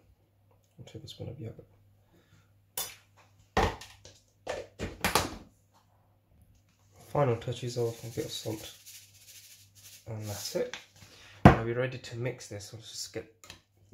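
A spoon clinks and scrapes against a bowl.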